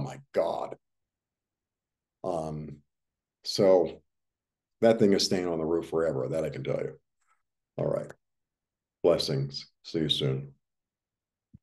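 An older man speaks calmly in short phrases over an online call.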